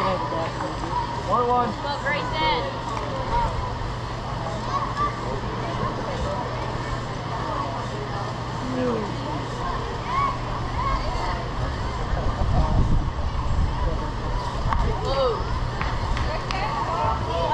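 Children shout and cheer from across an open field.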